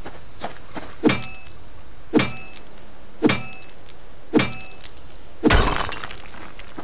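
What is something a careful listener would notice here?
A pickaxe strikes rock with sharp metallic clinks.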